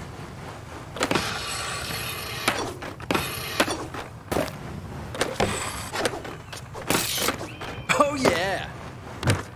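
Skateboard wheels roll and grind on ramps and rails.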